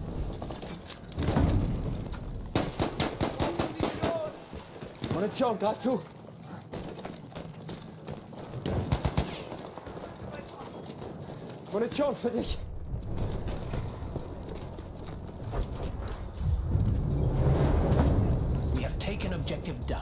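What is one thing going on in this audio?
Explosions rumble low and heavy.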